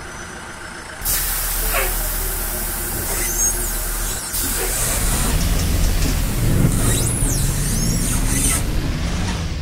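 Bus doors hiss and close.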